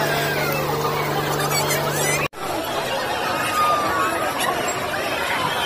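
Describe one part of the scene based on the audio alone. A crowd chatters and shouts loudly outdoors.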